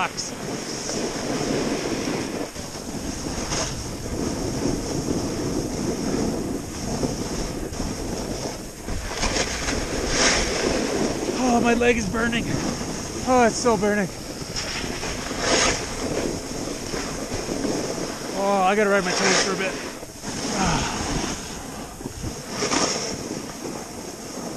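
Wind rushes past, strong and steady.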